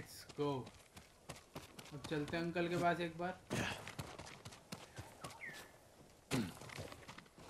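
Footsteps run on stone paving.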